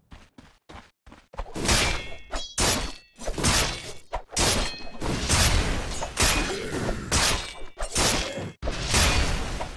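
Weapons clash and spells burst in a game battle.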